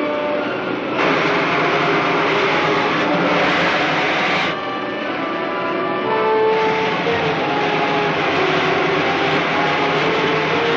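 A rocket engine roars loudly as a rocket flies past and climbs.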